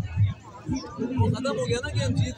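An elderly man talks loudly close by.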